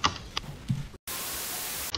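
Steady static hiss fills the air.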